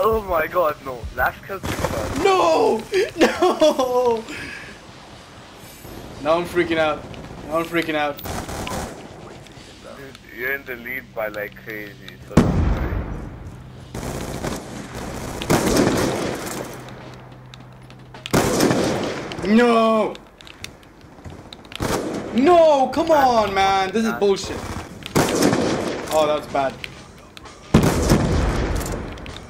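Gunshots crack from a rifle.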